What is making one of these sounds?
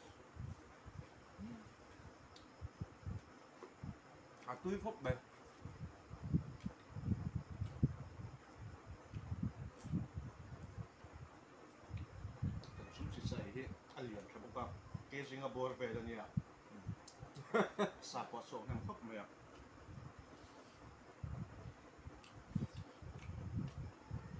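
Men eat with their hands, with soft chewing and smacking sounds close by.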